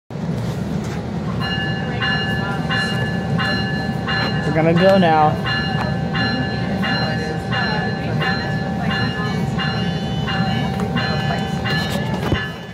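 A train rumbles slowly along the tracks, heard from inside a carriage.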